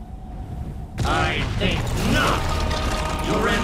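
Debris crashes and clatters down.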